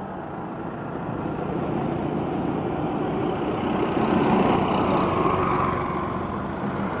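A motorised rickshaw's engine rattles as it drives close past.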